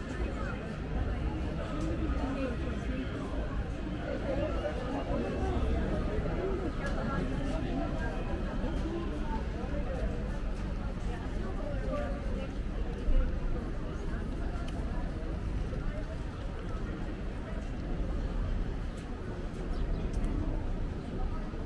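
Footsteps walk steadily on paving.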